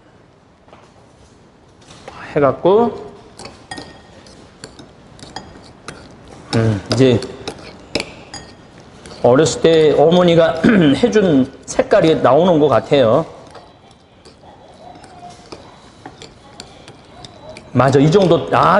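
Metal spoons scrape and clink against a ceramic bowl while mixing.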